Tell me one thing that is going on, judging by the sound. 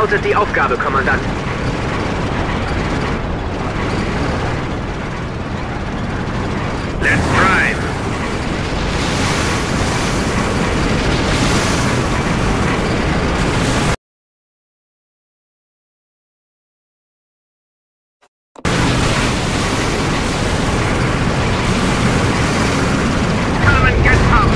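Tank engines rumble and clank as heavy vehicles roll along.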